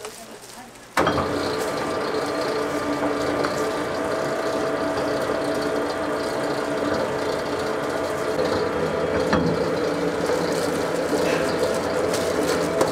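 A machine hums and grinds steadily.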